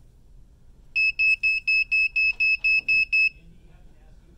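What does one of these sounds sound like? A thermometer beeps rapidly in an alarm.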